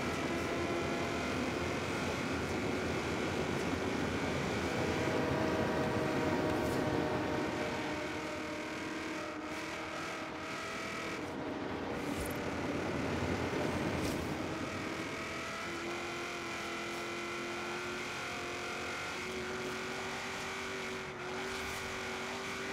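A car engine roars steadily at high speed, its pitch rising and falling with the gears.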